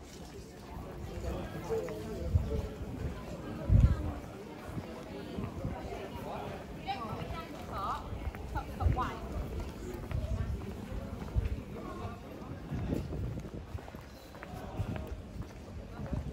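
Footsteps tap on paving stones outdoors.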